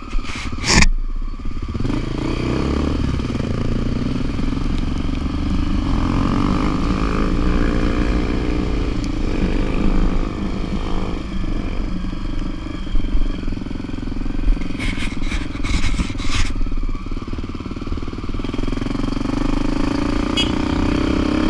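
A motorbike engine hums steadily up close, rising and falling with the throttle.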